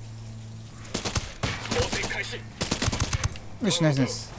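A suppressed rifle fires a few quick shots.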